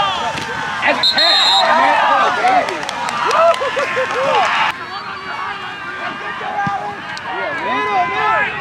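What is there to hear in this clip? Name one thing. A crowd cheers and shouts loudly outdoors.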